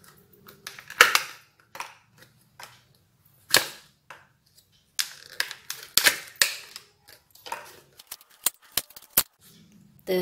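Thin plastic cups click and tap against a hard surface.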